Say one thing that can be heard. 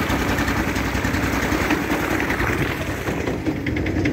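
A paddle splashes through shallow river water.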